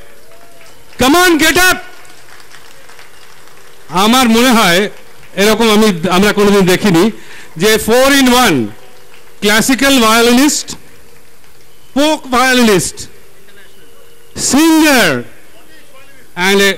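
A man sings through a microphone, in short phrases.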